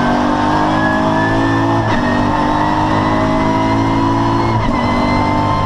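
A racing car engine's pitch jumps down in short steps as gears change while accelerating.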